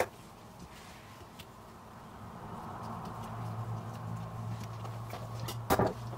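Soft leaves rustle as hands flatten them.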